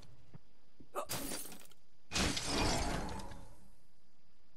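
A magical burst whooshes and crackles as a character transforms.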